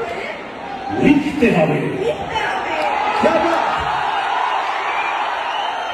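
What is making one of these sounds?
A man sings loudly into a microphone over a loudspeaker.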